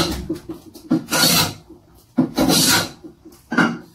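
A hand plane shaves wood in quick strokes.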